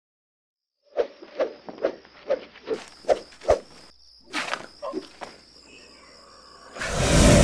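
Quick swishing and thudding blows come in a rapid series.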